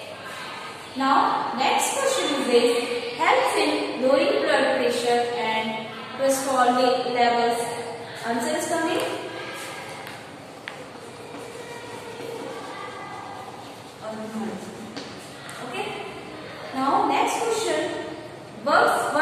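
A young woman speaks clearly and steadily, as if teaching.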